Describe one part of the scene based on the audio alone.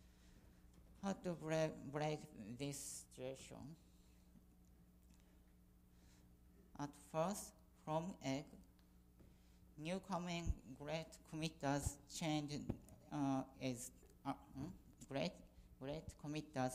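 A woman speaks into a microphone in a talk, in short bursts with pauses.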